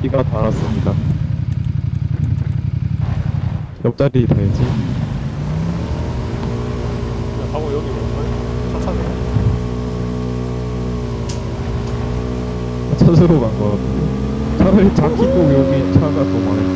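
A motorcycle engine idles and then revs as the bike rides off over rough ground.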